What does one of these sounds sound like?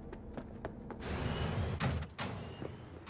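A heavy door slides open with a rushing hiss.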